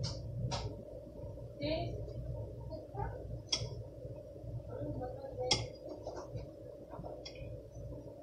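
Dishes and utensils clatter and knock on a counter.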